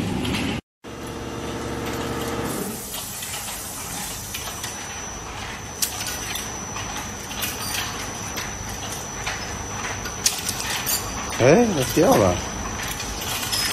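Metal hangers clink and rattle against each other.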